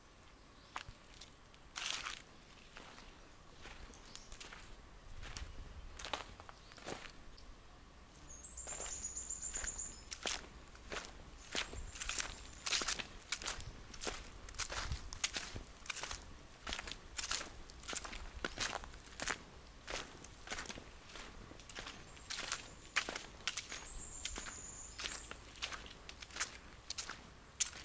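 Footsteps crunch on dry ground and leaves.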